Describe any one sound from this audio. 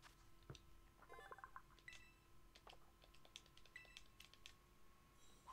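Short electronic chimes and blips sound.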